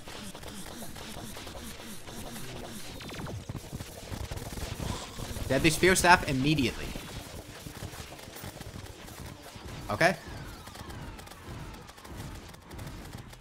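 Electronic game sound effects zap and burst in quick succession.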